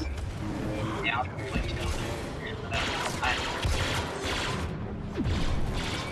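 Laser bolts zip past with sharp whines.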